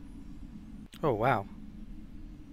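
A game menu makes a short warbling chime as it opens.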